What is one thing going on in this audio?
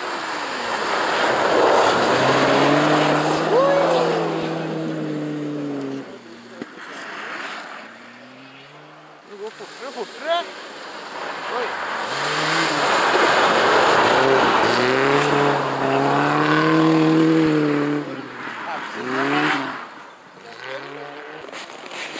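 Snow sprays and hisses from spinning tyres.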